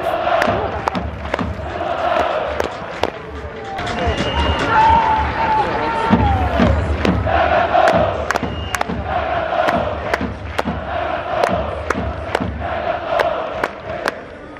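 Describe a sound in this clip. Drums beat steadily in the crowd.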